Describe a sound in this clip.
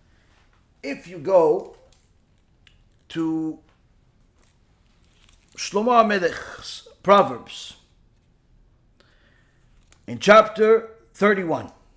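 A man speaks in short, animated bursts close by, with pauses between them.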